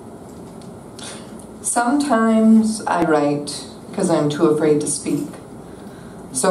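A young woman reads aloud into a microphone, heard through loudspeakers in an echoing room.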